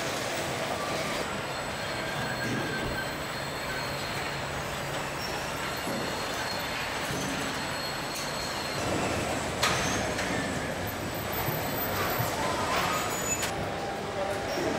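Factory machinery hums steadily in a large echoing hall.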